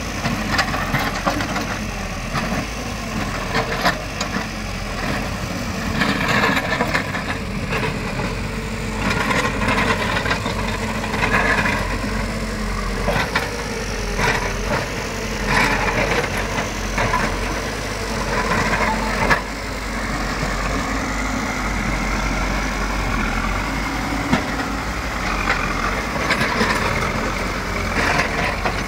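A diesel engine of a backhoe loader rumbles steadily close by.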